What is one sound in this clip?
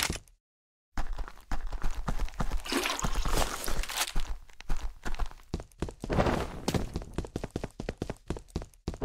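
Footsteps crunch over rough ground at a quick pace.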